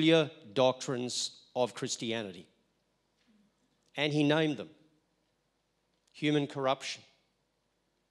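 An elderly man speaks calmly into a microphone over loudspeakers, pausing between phrases.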